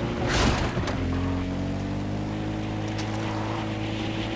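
A quad bike engine drones steadily.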